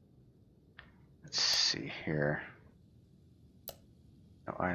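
Short menu clicks sound as options are selected.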